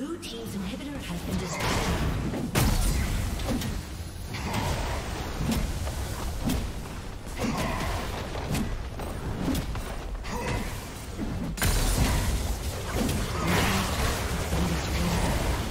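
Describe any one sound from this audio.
Magic spells crackle and burst during a game battle.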